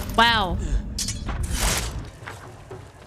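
Swords clash and clang.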